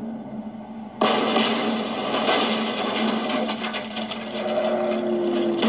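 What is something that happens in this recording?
A heavy vehicle crashes and scrapes down a rocky cliff.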